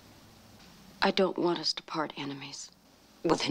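A woman answers in a low, earnest voice.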